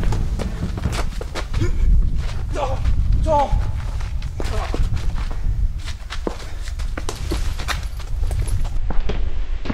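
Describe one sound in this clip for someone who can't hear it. Shoes scuff and shuffle on the ground.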